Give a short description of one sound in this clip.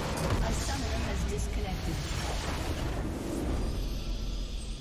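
A loud rumbling blast explodes and crashes.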